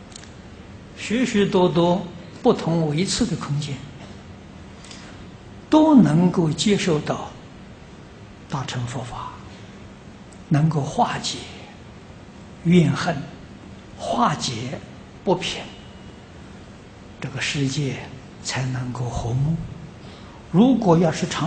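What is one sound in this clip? An elderly man speaks calmly into a microphone, in short phrases.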